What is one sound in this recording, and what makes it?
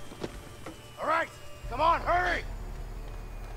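A man speaks urgently and sharply.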